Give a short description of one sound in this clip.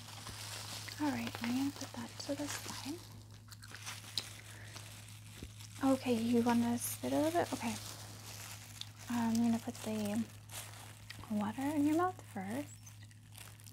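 A woman speaks calmly and close to a microphone, with pauses.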